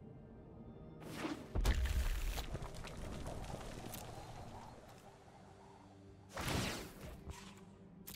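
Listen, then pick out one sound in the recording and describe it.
A magical whoosh sweeps past with a shimmering rush.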